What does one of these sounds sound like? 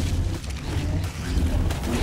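A heavy blow lands with a roaring fiery blast.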